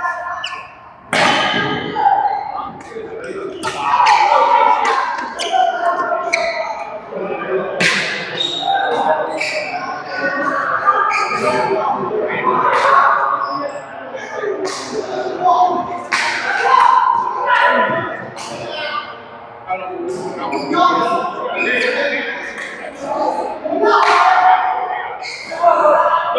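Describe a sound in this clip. Men talk and call out in an echoing hall.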